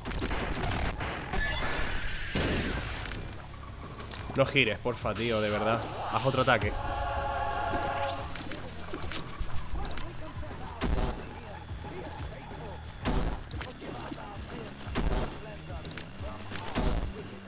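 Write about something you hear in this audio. Game sound effects pop and burst in quick succession.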